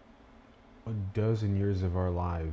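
A man starts speaking with animation.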